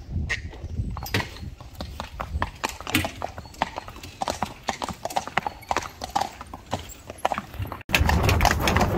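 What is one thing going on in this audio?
Horse hooves clop on paving stones.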